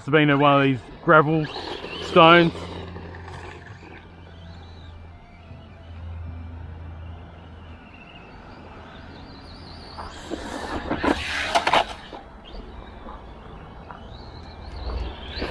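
A small electric motor whines, rising and falling.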